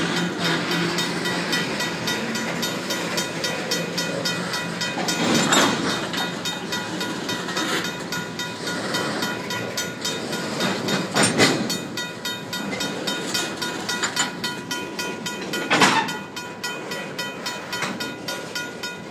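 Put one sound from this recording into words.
Steel wheels squeal and screech against the rails.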